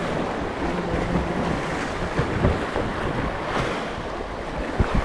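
Wind rumbles across the microphone.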